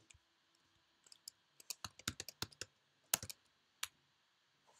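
Keys on a computer keyboard click in quick bursts.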